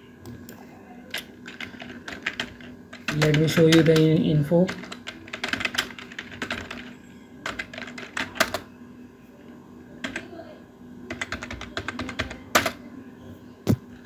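Keys clack on a computer keyboard in quick bursts.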